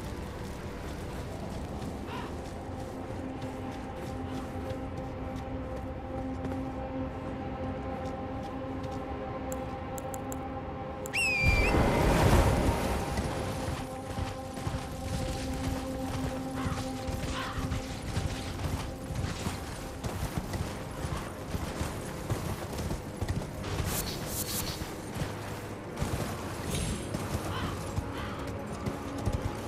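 Footsteps crunch over dry grass and rocky ground.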